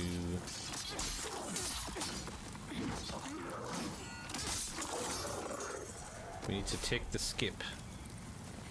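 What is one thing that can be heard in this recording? Swords clash and slash in quick strikes.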